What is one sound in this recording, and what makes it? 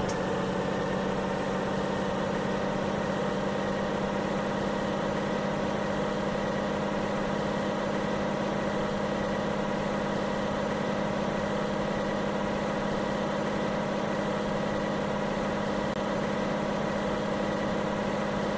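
A truck engine hums steadily as the truck drives along a road.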